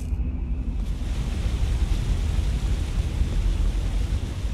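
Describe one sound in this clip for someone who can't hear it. Footsteps run over rock.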